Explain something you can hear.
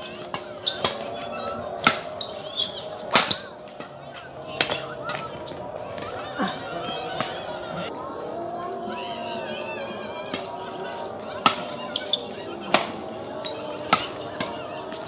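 Badminton rackets smack a shuttlecock in a fast rally.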